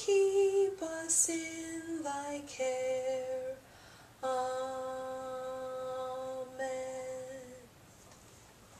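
A middle-aged woman sings slow, held notes nearby.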